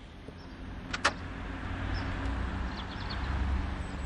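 A car drives by on a street.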